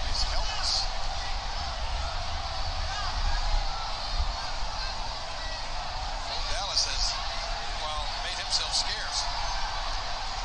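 A large crowd cheers and shouts steadily in a big echoing arena.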